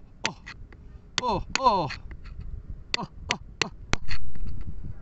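A metal pick taps and chips at a stone.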